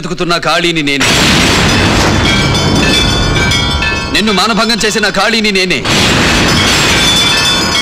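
Hanging bells ring and clang together.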